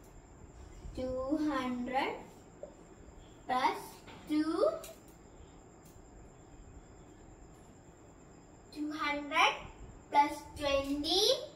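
A young girl reads numbers aloud close by, in short bursts.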